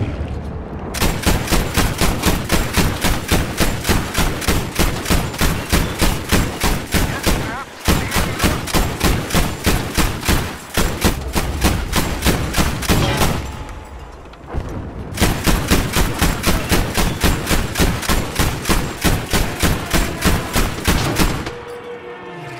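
An anti-aircraft gun fires rapid bursts of shots.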